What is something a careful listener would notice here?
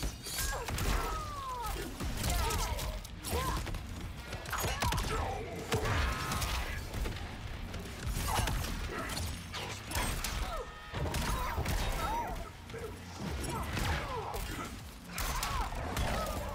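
Magic blasts crackle and whoosh in short bursts.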